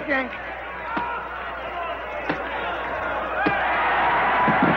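Boxing gloves thump against a body.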